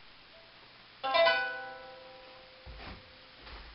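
A ukulele is strummed once and rings out.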